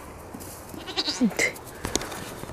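A young goat bleats briefly.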